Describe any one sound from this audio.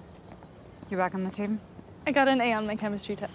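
A young woman laughs.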